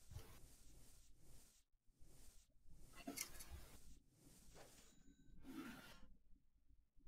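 Short menu sounds click and chime as selections are made.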